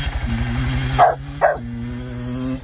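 A dog barks outdoors.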